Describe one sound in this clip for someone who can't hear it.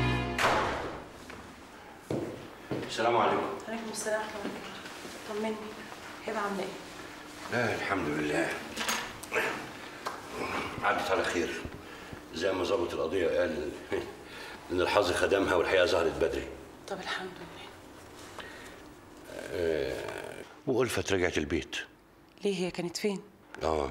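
A woman speaks close by.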